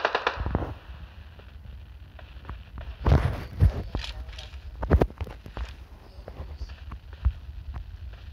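Gunshots crack in sharp bursts.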